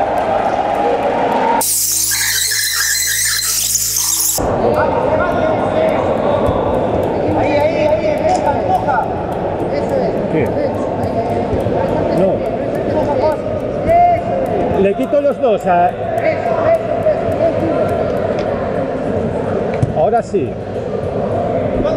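A large crowd chatters and calls out in an echoing hall.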